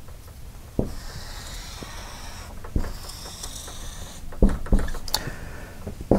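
A marker squeaks as it draws on a wall.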